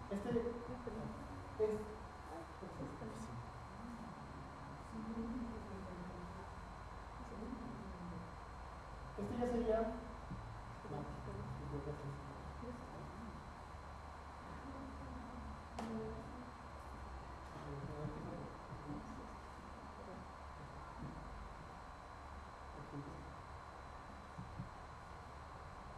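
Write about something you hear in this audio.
A man speaks calmly, heard from a short distance.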